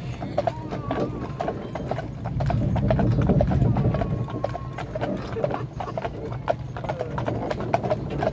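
Carriage wheels rumble on the road.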